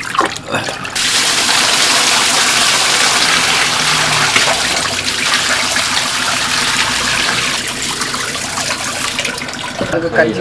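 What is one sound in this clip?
Water gushes out and splashes loudly onto a hard floor.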